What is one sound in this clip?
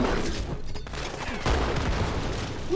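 A shotgun fires with a loud blast.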